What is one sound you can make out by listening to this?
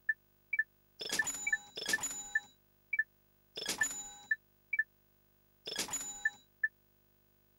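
A bright, shimmering chime rings out several times.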